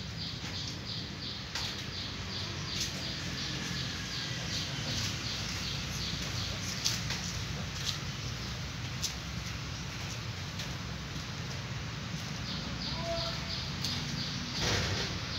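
Cats chew and lap at food with soft smacking sounds.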